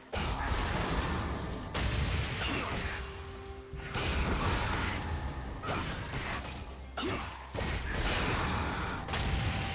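Magical blasts and hits crackle and thump in a fast battle.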